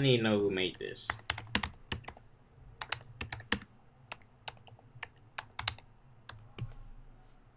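Computer keys click in quick bursts.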